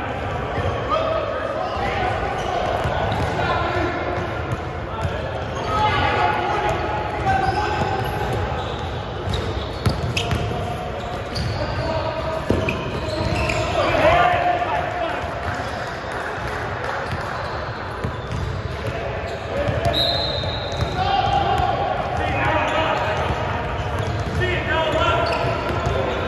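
Young men shout and call out to each other across the echoing hall.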